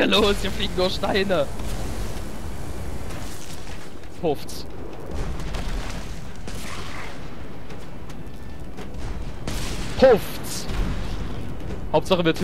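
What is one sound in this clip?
Spells whoosh and burst.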